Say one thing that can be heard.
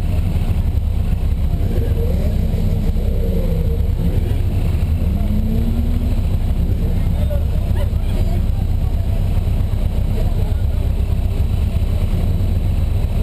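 A car engine idles with a steady low rumble close by.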